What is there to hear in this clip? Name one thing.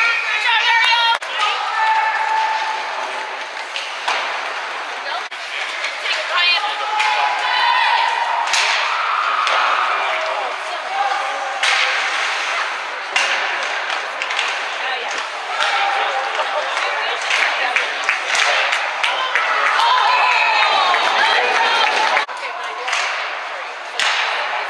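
Hockey sticks clack against a puck and each other.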